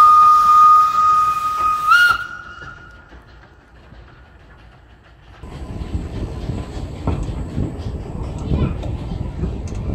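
A steam locomotive chugs away slowly down the track.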